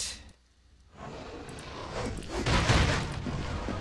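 A fight breaks out with heavy blows and crashing.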